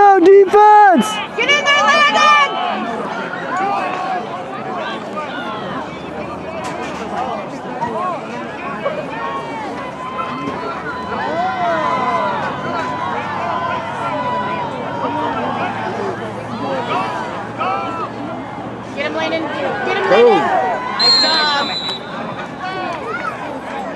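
A crowd of spectators chatters and cheers nearby outdoors.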